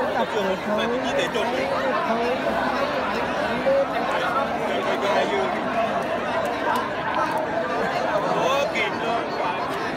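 A large outdoor crowd chatters and calls out continuously.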